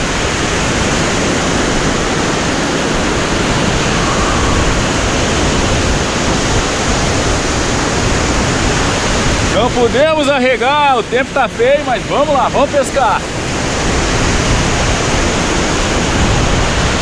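Waves break and wash up onto a beach.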